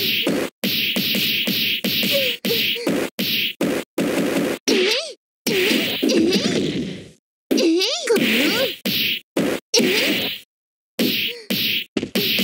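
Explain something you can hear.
Punches and kicks land with sharp, rapid thuds.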